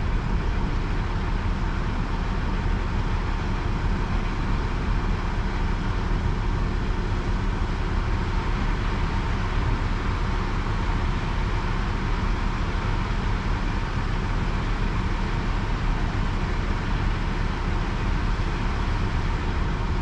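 A crane's engine rumbles steadily nearby, outdoors.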